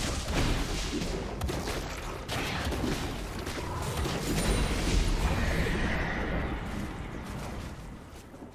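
Magical spell effects whoosh and crackle in a fight.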